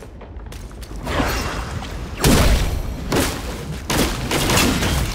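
Stone debris rumbles and crashes.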